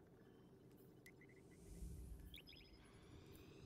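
Soft electronic menu chimes blip quickly in a row.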